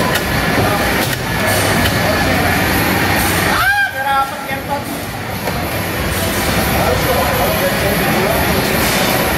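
Racing game engines roar loudly from arcade speakers.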